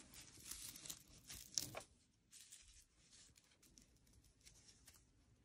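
Dry flowers rustle and crackle between gloved fingers.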